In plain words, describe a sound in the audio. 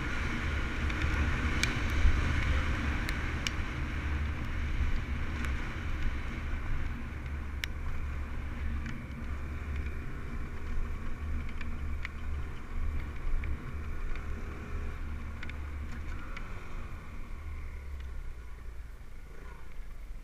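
A dirt bike engine roars steadily up close.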